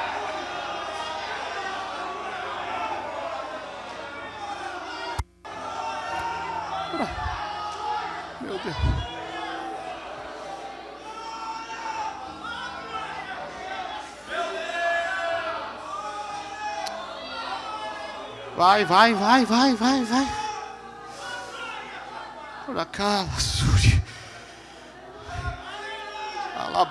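A man preaches loudly and with passion through a microphone in a large echoing hall.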